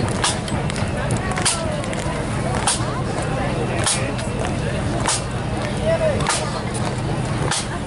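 Snare drums rattle along with the band.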